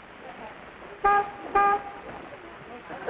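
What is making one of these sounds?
A car horn honks twice in short blasts.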